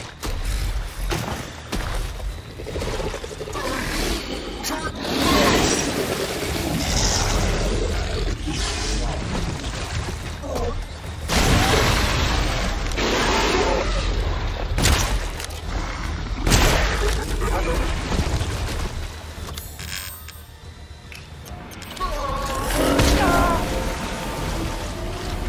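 Feet wade and splash through shallow water.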